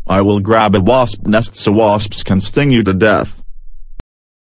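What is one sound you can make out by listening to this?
A man shouts angrily in a synthetic computer voice.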